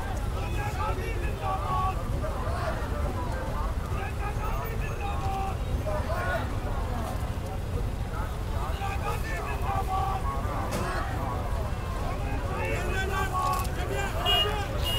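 A crowd of men and women talk and shout all around, close by, outdoors.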